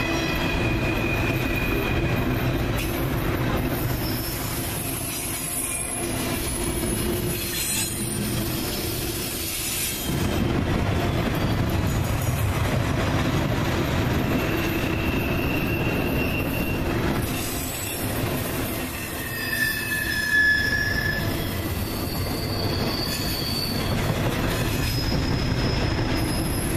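Steel wheels squeal and screech on the rails.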